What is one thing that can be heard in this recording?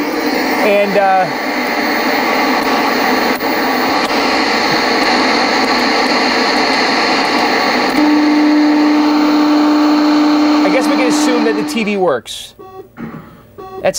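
A tuning knob clicks as it is turned.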